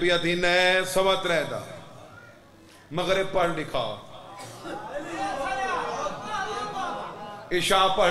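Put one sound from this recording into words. A young man speaks passionately into a microphone, heard through a loudspeaker with a slight echo.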